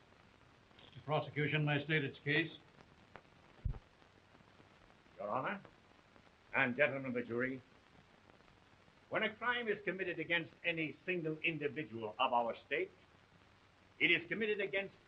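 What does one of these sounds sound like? An elderly man speaks firmly and with feeling.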